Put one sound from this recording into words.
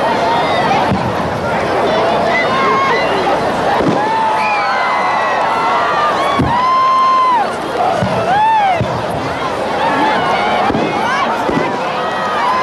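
Fireworks whistle and screech as they rise.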